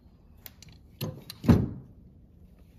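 A metal part knocks onto a hard surface.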